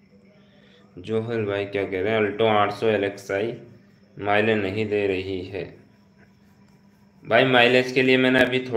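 A young man speaks calmly and close up.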